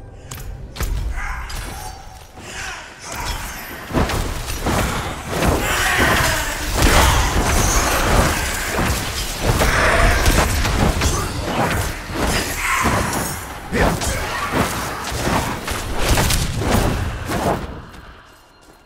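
Loud blows and crackling blasts of magic crash in quick bursts.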